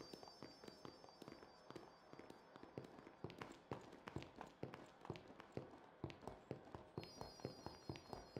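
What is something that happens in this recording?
Footsteps patter along a forest path.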